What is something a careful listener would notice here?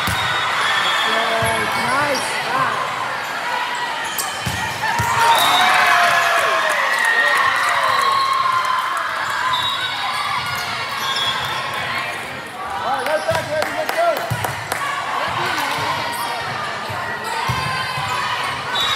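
Young women shout and cheer with excitement.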